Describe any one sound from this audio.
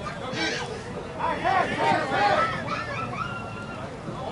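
Men cheer and shout after the hit.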